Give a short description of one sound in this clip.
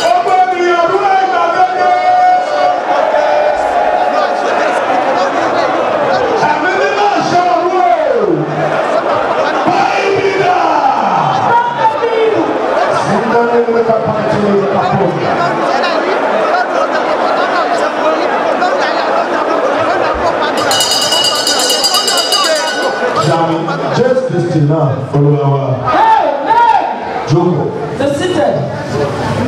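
A man sings loudly into a microphone, heard through loudspeakers.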